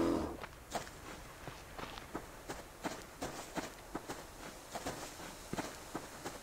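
Footsteps rustle through grass at a steady pace.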